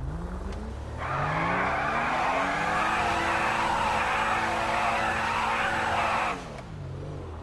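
Tyres screech loudly as a car drifts.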